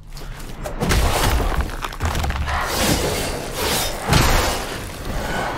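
A sword swings and strikes with metallic hits.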